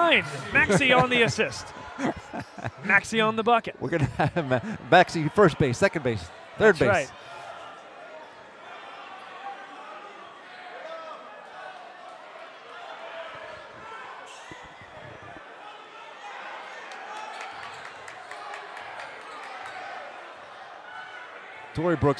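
A large crowd chatters and murmurs in an echoing gym.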